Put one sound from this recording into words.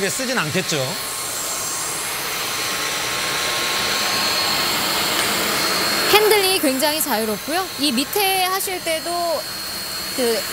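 A vacuum cleaner whirs steadily.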